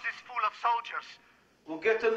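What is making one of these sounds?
A man speaks gruffly over a telephone line.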